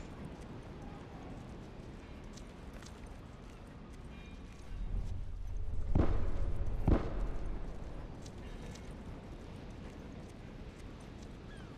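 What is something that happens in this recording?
Footsteps scuff softly on hard ground.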